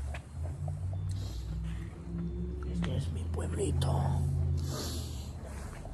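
A young man speaks briefly close to the microphone.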